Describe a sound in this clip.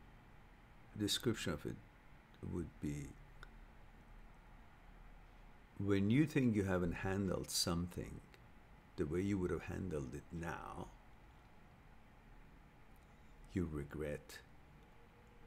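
A middle-aged man speaks calmly in short bursts, close to a microphone.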